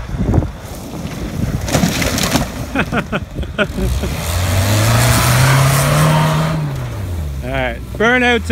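Tyres skid and crunch over loose dirt.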